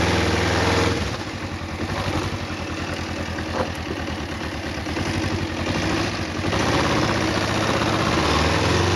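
A motorcycle engine revs and pulls away as the bike rides along.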